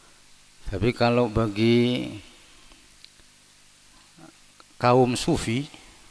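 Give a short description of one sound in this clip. A man chants in a melodic voice through a microphone, in an echoing hall.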